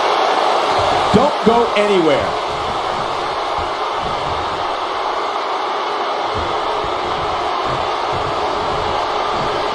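A large crowd roars steadily in a big arena.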